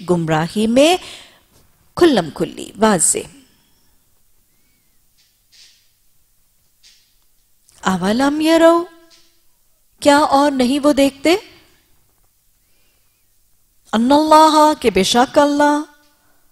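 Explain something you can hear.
A woman speaks slowly and expressively into a microphone, in short phrases with pauses.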